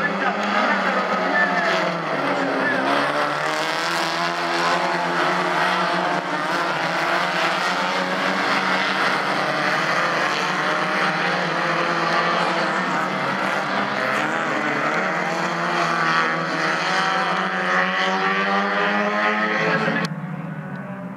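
Several racing car engines roar and rev loudly, rising and falling in pitch.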